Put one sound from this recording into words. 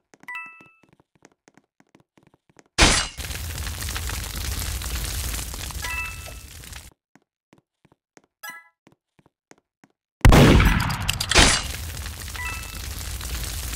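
Coins chime brightly as they are picked up.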